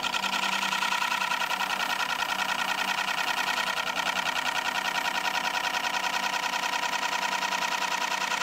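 A lathe spins with a steady hum.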